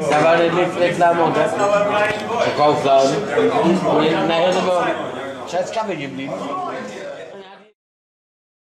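Several men talk and chat nearby.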